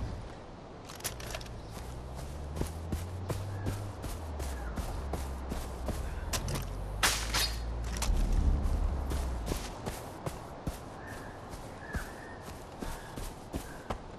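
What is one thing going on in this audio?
Footsteps swish and crunch through grass.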